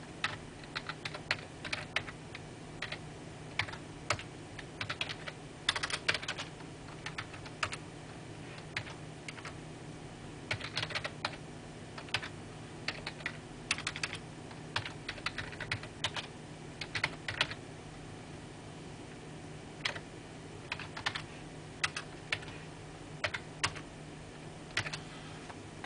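Keys clack on a keyboard in short bursts of typing.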